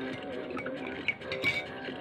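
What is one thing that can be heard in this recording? A spoon clinks against a cup.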